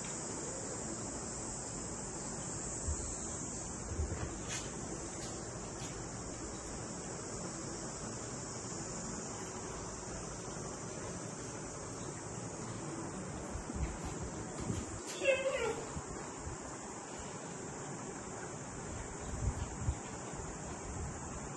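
Dogs' paws patter and click on a hard floor.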